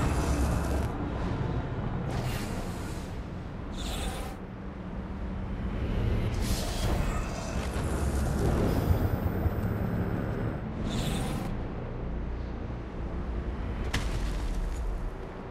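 A low rumble of wind and fire roars steadily.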